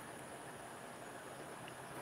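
A man sips water from a glass.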